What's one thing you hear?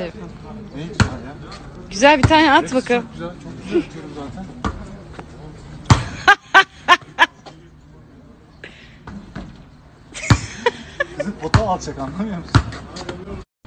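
A basketball bounces hard on a court.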